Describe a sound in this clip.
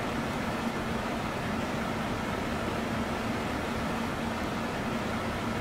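Jet engines drone steadily with a low hum.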